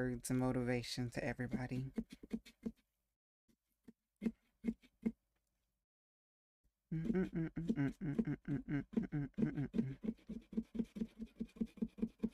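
A knife scrapes and cuts into a pumpkin.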